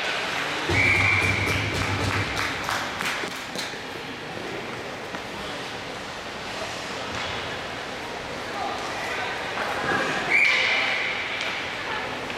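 Skates scrape across the ice in an echoing arena.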